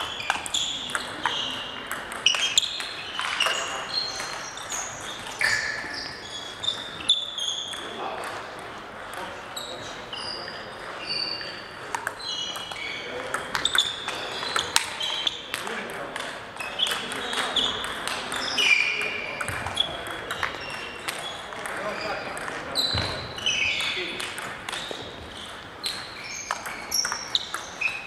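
Shoes squeak sharply on a hard floor in an echoing hall.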